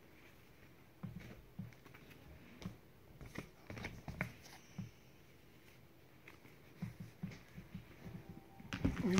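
Cards are shuffled by hand.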